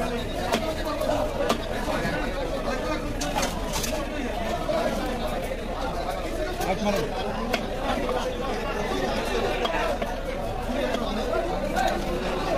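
A cleaver chops through fish onto a wooden chopping block.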